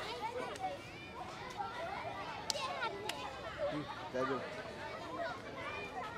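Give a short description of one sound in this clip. Children chatter and call out across an open field outdoors.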